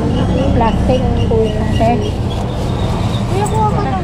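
A plastic bag rustles as fruit is packed.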